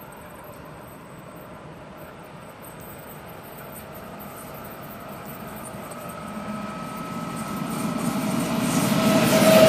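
A train approaches on the tracks, rumbling louder as it draws near.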